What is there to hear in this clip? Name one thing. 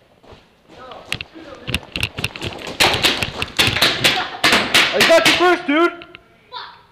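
Paintball guns fire in rapid bursts of sharp pops, close by.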